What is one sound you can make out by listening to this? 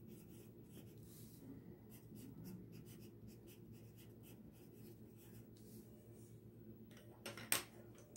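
A colored pencil scratches softly across paper.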